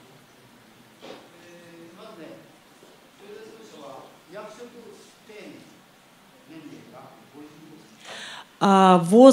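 An elderly man speaks quietly off microphone.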